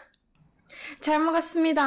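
A young woman speaks cheerfully close to a microphone.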